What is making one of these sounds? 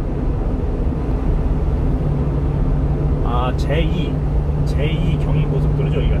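A car engine hums steadily with road roar from inside a moving vehicle.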